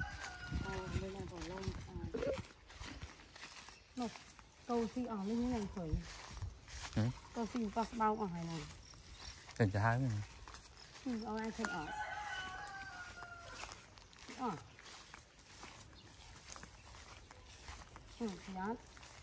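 A woman talks nearby in a lively voice.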